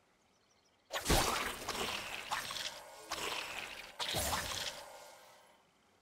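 Game sound effects of swift blows and spells clash in quick bursts.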